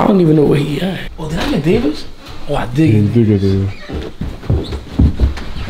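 Footsteps thud down wooden stairs.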